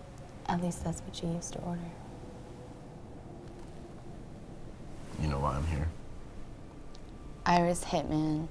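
A young woman speaks quietly up close.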